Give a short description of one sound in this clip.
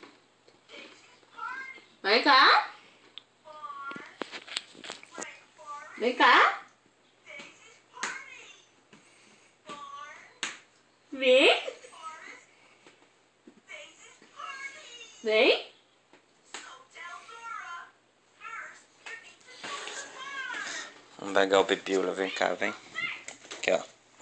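A woman speaks to a baby close by in a lively, sing-song voice.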